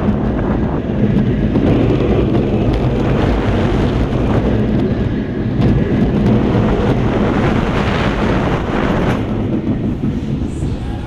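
Wind roars past at speed.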